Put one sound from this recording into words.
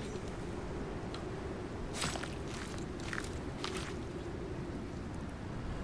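A knife cuts wetly through an animal's hide.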